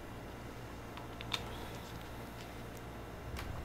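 Footsteps shuffle softly on a wooden floor.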